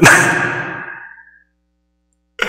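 A man laughs loudly close to a microphone.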